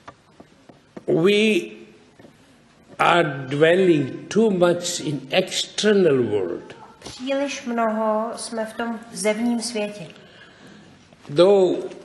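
An elderly man speaks calmly and with animation, close to a microphone.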